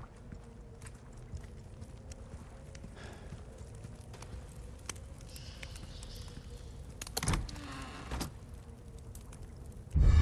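A torch fire crackles nearby.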